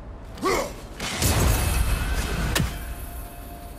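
A thrown axe strikes with a loud crash.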